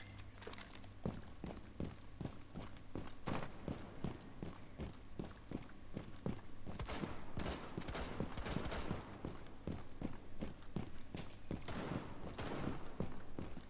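Footsteps thud quickly and steadily on hard ground.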